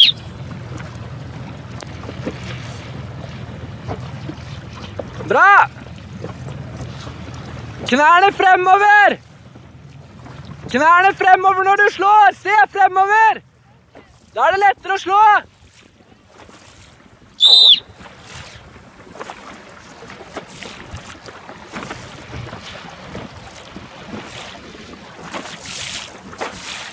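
Small waves slosh and lap against a boat.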